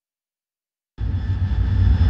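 A jet engine roars with a deep, steady rumble.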